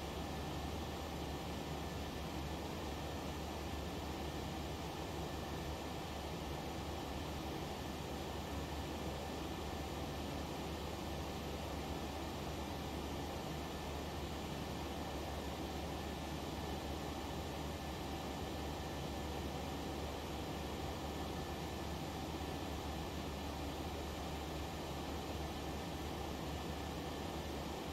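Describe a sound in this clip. A jet airliner's engines roar with a steady, even hum.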